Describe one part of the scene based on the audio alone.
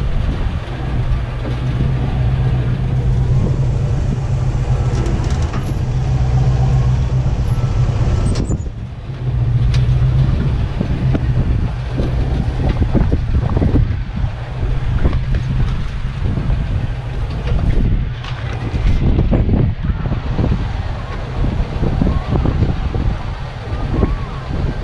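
Tyres crunch and grind over loose rocks and gravel.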